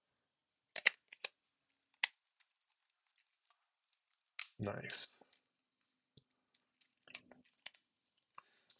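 A small plastic case clicks and taps as hands handle it.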